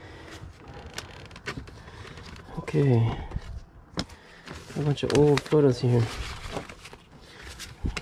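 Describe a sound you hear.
Paper photographs rustle and shuffle as hands sort through a box.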